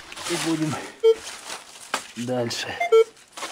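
A metal detector beeps briefly.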